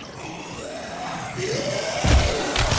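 A monster snarls and growls close by.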